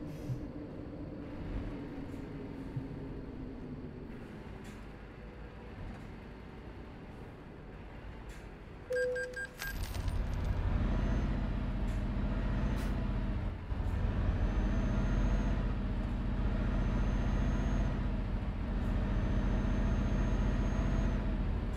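A truck engine rumbles steadily, growing louder as the truck pulls away and speeds up.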